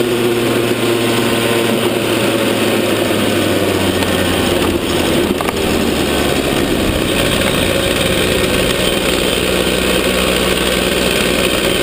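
A small kart engine buzzes loudly close by, its pitch rising and falling.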